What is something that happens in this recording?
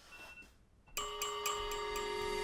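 A phone alarm plays a ringing melody.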